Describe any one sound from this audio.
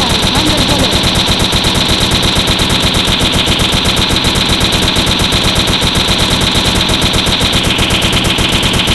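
A rapid-fire gun shoots in fast, steady bursts.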